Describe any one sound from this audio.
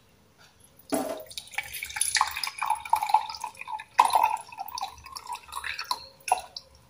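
Juice trickles through a small strainer into a glass.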